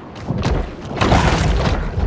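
A shark bites down with a crunching impact.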